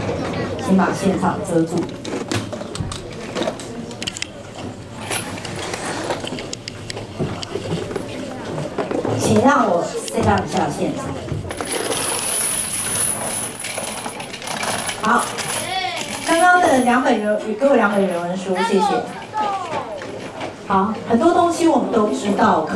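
Children chatter and murmur nearby.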